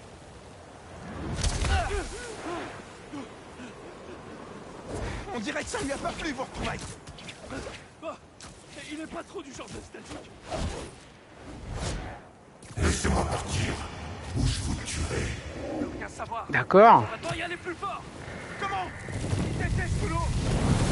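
A roaring wind howls through a sandstorm.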